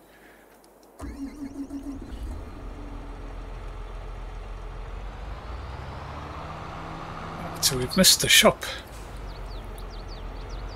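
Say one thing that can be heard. A tractor engine starts up and rumbles steadily as the tractor drives along.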